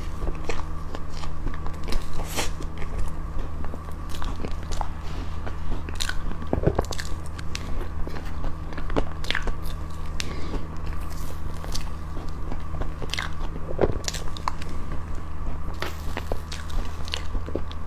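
A young woman chews and smacks soft cream cake close to a microphone.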